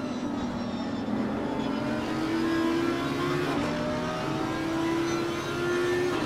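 A race car engine roars at high revs, rising in pitch and dropping with gear shifts.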